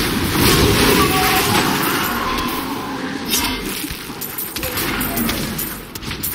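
Fiery blasts crackle and burst in a dense, rapid clash.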